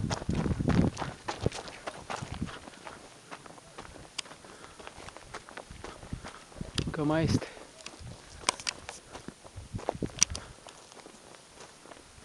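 Footsteps crunch on a dry, stony dirt path.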